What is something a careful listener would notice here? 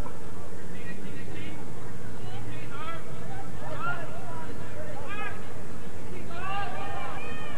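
Players shout faintly across an open field outdoors.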